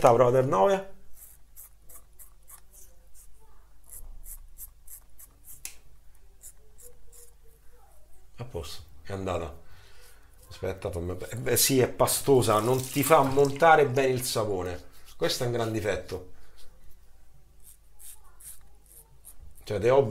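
A razor scrapes through stubble in short strokes.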